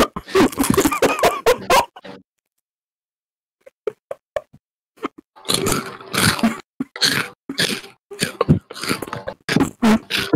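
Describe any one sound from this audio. A young man slurps and gulps a drink from a can, close up.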